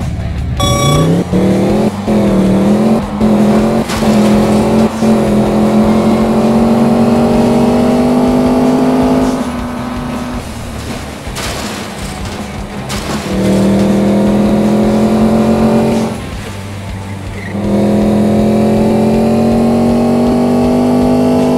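A sports car engine roars, revving higher as the car speeds up, and drops away briefly when it slows into corners.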